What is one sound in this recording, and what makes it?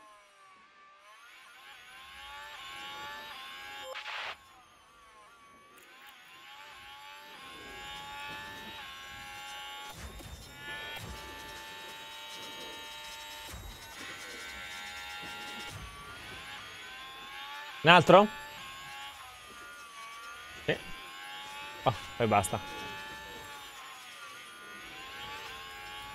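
A racing car engine whines and shifts gears at high speed.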